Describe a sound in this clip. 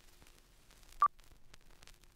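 A short, high beep sounds once.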